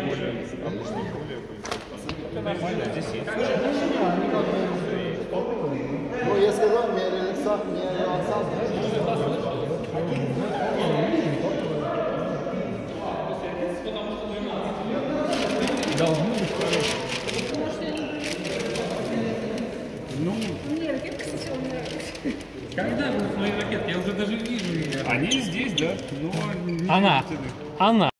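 Several men talk nearby in a large echoing hall.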